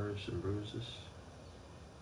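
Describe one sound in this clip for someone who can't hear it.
A young man talks briefly into a microphone.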